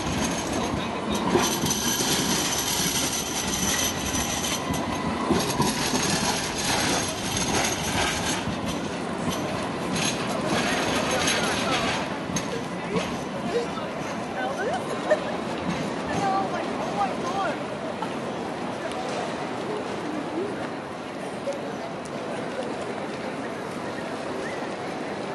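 City street noise hums steadily outdoors.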